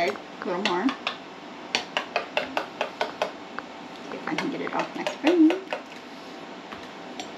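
A spoon clinks and scrapes quickly against a bowl.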